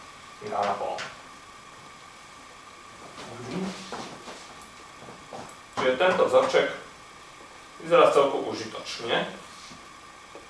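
A young man speaks calmly in short phrases in an echoing room.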